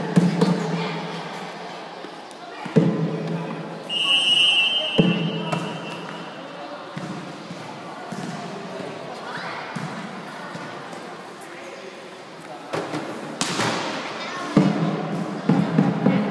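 Children shout and call out nearby.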